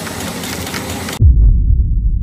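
Plastic straws rustle and clatter against each other.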